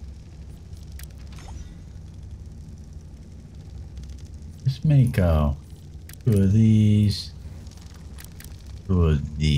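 Soft interface clicks sound as menu items are selected.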